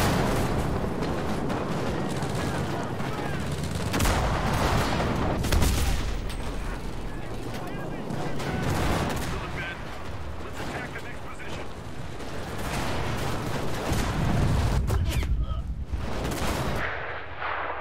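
Gunfire and explosions boom and crack in a battle.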